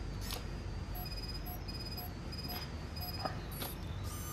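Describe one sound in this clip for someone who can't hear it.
A console gives a series of short electronic beeps.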